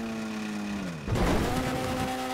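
A buggy lands hard with a thud.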